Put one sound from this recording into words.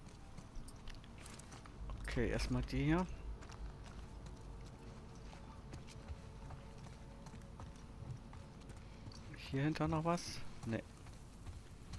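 Footsteps walk slowly over wooden boards and ground.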